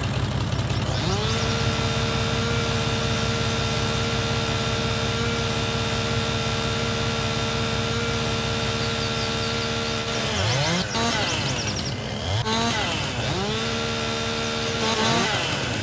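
A chainsaw revs up to a loud, steady whine, drops off, and revs again.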